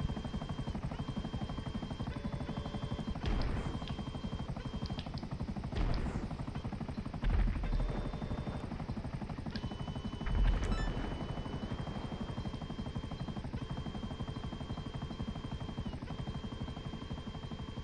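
A helicopter's rotor thumps in a fast, steady beat.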